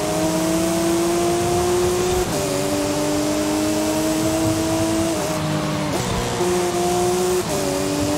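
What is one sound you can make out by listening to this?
A car engine roars at high revs, dropping in pitch at each gear change.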